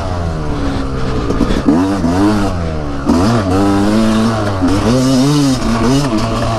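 A dirt bike engine revs up and down loudly close by.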